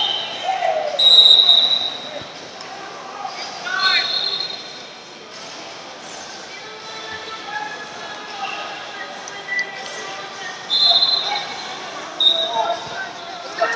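Shoes squeak sharply on a rubber mat.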